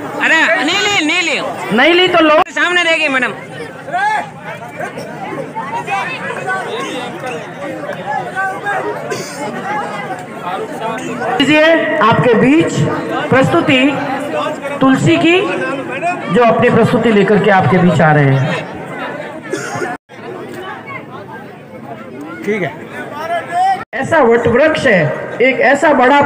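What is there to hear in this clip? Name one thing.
A woman speaks into a microphone, heard over loudspeakers.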